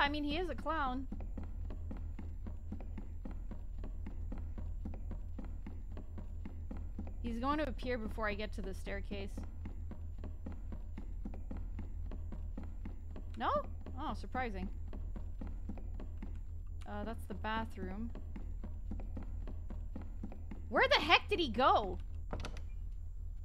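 A young woman speaks animatedly into a microphone in short bursts.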